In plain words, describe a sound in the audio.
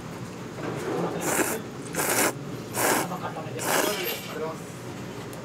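A young woman slurps noodles loudly.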